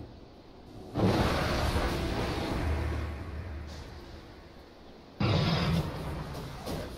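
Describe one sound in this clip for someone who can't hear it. Magic spells burst with loud whooshing blasts.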